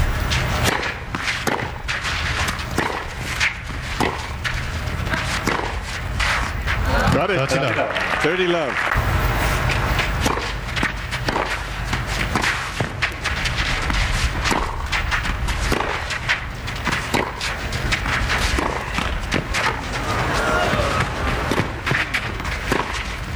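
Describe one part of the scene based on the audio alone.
Tennis rackets strike a ball back and forth in a steady rally.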